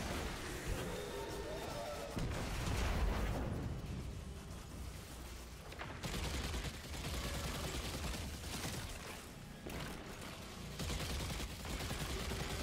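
Heavy gunfire blasts in rapid bursts.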